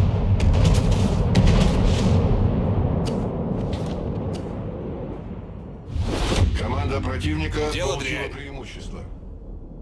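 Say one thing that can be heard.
Heavy naval guns fire with loud, deep booms.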